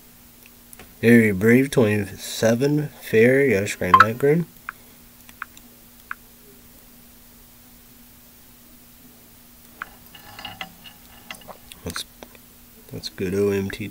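A young man talks calmly and close up.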